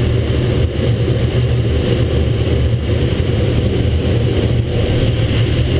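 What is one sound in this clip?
Air rushes loudly past a glider's canopy.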